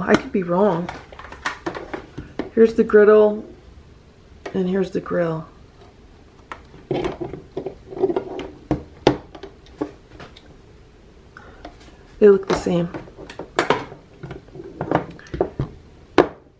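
Hard plastic appliances knock and clatter as they are handled.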